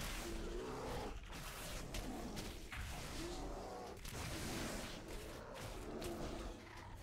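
Magic blasts and weapon strikes crackle and thud in a busy fight.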